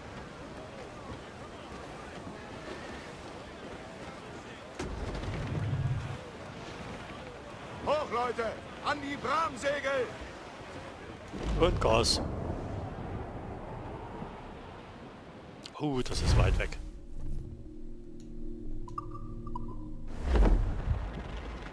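Waves wash against a sailing ship's hull.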